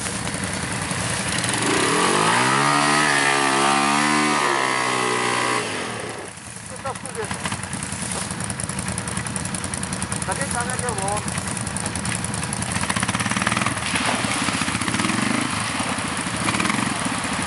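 A quad bike engine revs hard and whines.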